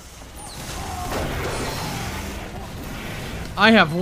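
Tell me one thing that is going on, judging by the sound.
Explosions boom and crackle nearby.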